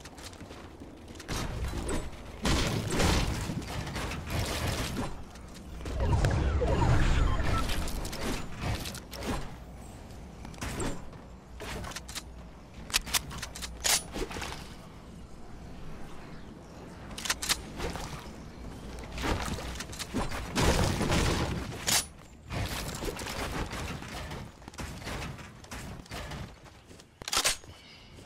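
Wooden walls and ramps snap into place in quick bursts of clacks.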